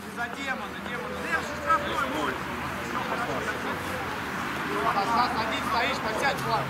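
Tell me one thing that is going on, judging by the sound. Men shout and call out to one another across an open field outdoors.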